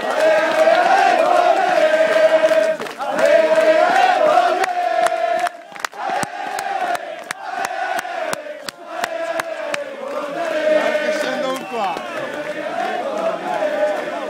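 A large crowd of men chants loudly outdoors.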